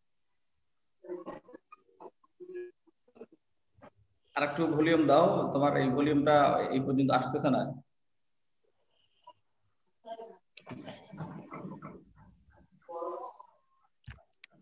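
A man speaks calmly into a microphone on an online call, with pauses.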